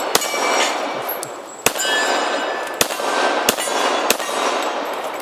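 A handgun fires several sharp shots outdoors.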